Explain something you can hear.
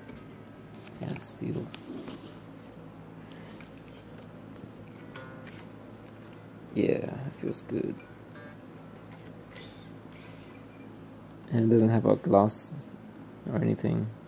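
An unplugged electric guitar's strings are strummed and plucked in short bursts.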